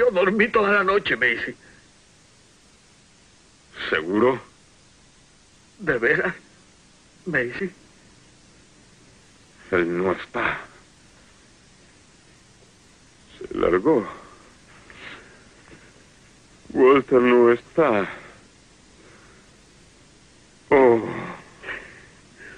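A man speaks in a low, tense voice, in short bursts.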